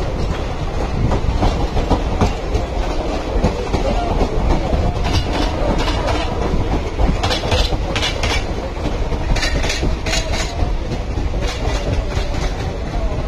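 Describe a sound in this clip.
Train wheels clatter rhythmically over rail joints.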